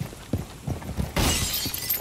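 A gun fires a loud burst of shots.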